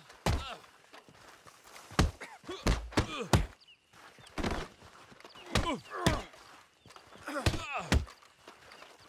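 Fists land heavy blows in a brawl.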